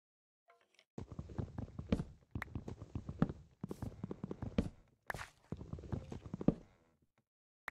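Blocks crack and break under quick repeated chops.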